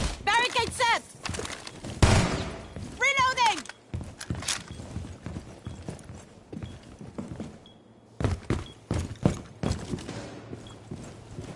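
Footsteps thump on a hard floor.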